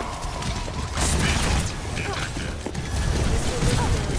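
An explosion bursts nearby with a deep boom.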